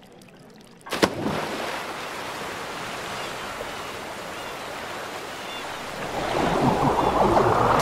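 Water waves slosh and splash steadily.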